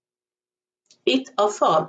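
A woman speaks calmly, close to a microphone.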